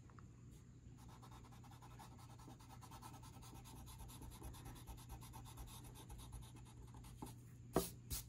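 An eraser rubs against paper.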